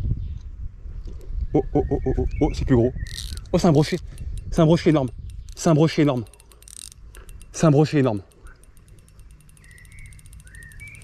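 A fishing reel whirs and ticks as the line is wound in.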